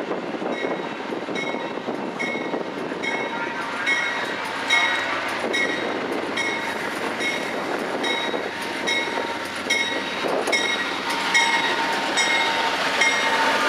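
A train's wheels click rhythmically over rail joints.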